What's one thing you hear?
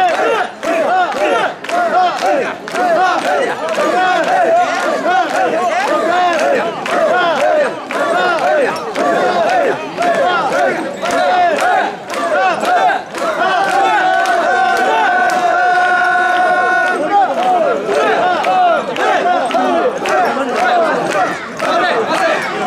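A large crowd of men chants loudly together in rhythm nearby.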